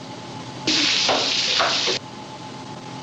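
Water sprays and gushes loudly.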